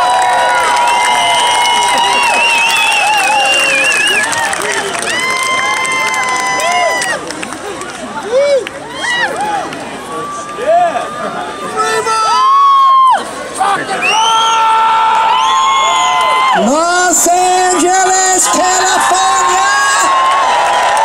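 A rock band plays loudly through a large outdoor sound system.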